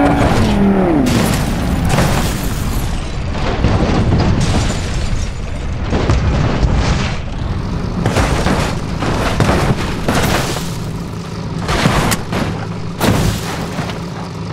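A car crashes and tumbles, with loud metal crunches and bangs.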